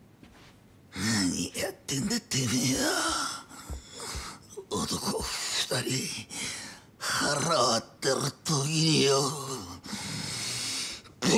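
A man shouts angrily with animation, close by.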